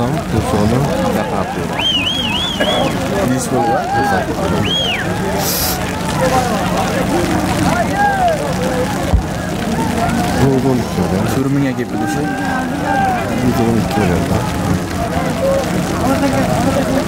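A large crowd of men shouts and calls out outdoors.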